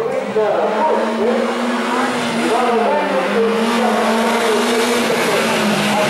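A car engine revs hard, rising and falling in pitch as it shifts gears through a bend.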